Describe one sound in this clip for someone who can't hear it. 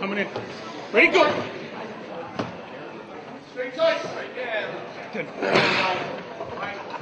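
Several men shout and cheer with excitement.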